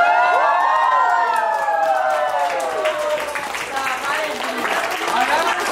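A crowd of young children shrieks and cheers excitedly nearby.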